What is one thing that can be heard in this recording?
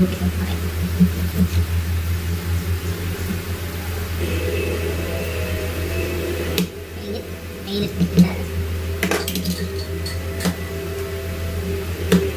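A fork clinks and scrapes against a plate.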